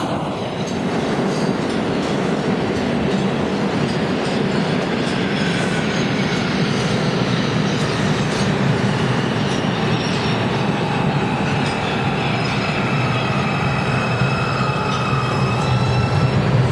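A second subway train rolls into the station with a rumble of wheels on the rails.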